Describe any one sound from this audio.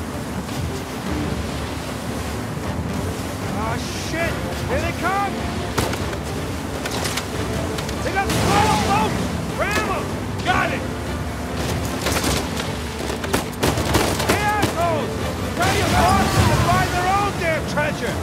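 A motorboat engine roars steadily.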